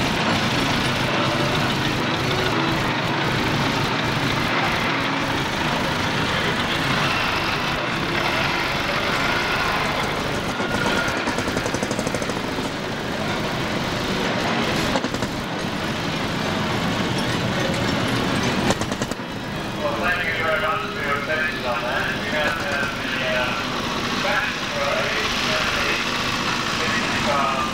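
A vintage car engine runs and putters.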